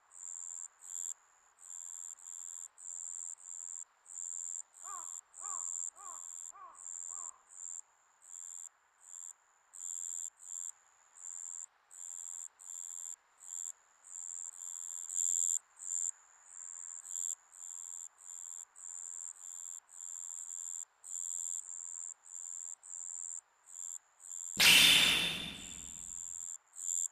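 Soft electronic blips tick rapidly, in quick bursts.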